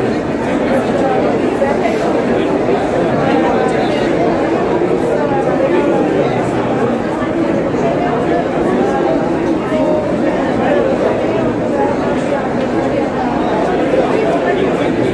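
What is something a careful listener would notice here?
A woman speaks calmly into microphones, close by.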